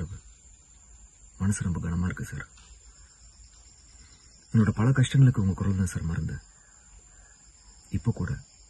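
A young man speaks calmly and close up, in short phrases with pauses.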